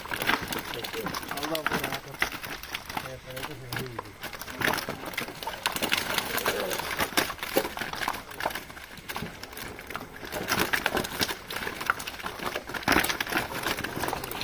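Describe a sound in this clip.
Fish slap and thud as they are tossed into plastic crates.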